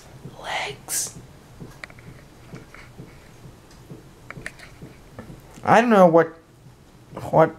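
A teenage boy speaks casually close by.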